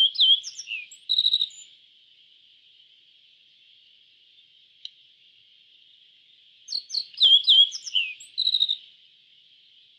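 A small bird sings a bright series of high chirps and trills.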